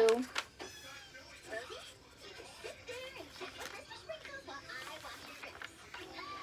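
A young girl talks softly and close by.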